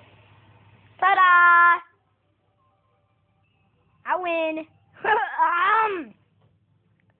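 A young girl speaks loudly and playfully close by.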